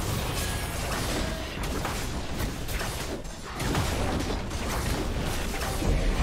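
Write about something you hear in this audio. Magic blasts crackle and boom in a fast fight.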